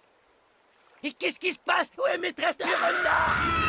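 A man shouts in panic.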